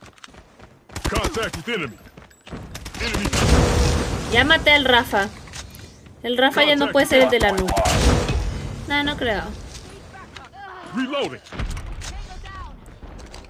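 Gunfire from a video game crackles in rapid bursts.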